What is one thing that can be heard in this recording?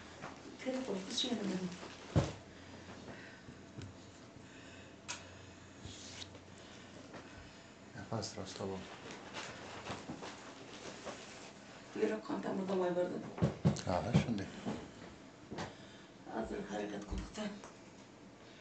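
An elderly woman speaks calmly nearby, in short bursts.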